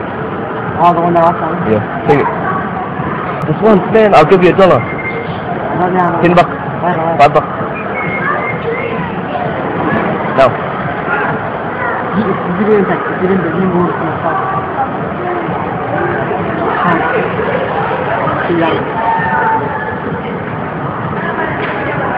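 A young man talks and laughs close by on a phone.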